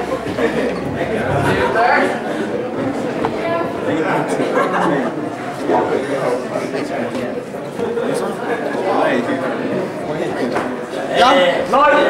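Several men and women chatter and laugh close by.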